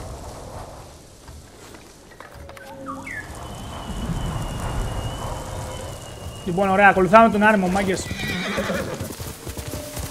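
A horse gallops over soft grass.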